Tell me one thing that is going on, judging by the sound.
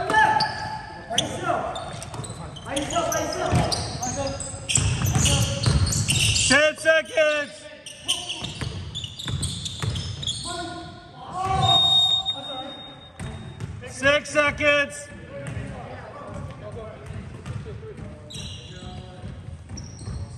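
Young men call out to each other across an echoing gym.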